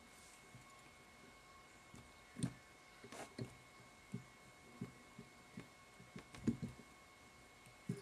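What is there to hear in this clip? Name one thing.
Thread is wound tightly around a small hook, with faint rubbing and tugging.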